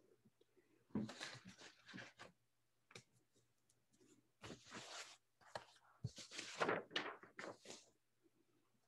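An elderly woman speaks softly and calmly, close by.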